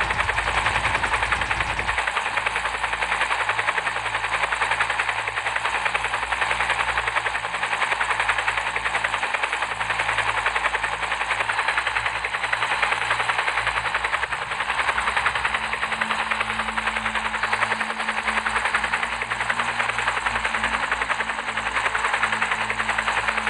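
Helicopter rotor blades chop rapidly and steadily.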